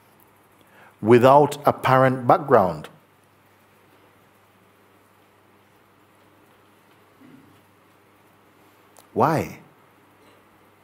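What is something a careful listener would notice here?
An elderly man speaks calmly and expressively close to a microphone, with long pauses.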